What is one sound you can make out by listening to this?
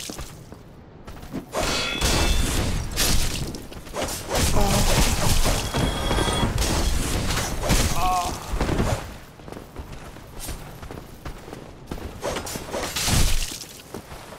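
Armoured footsteps clatter on stone.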